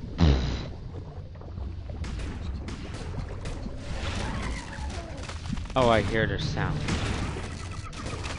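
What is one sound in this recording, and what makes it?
A deep underwater rumble murmurs steadily.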